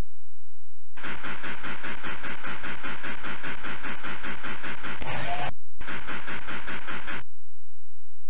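A steam train chugs along noisily.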